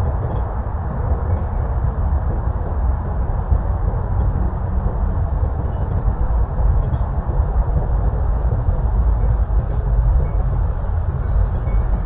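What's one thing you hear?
Wind gusts steadily outdoors with a low rumble.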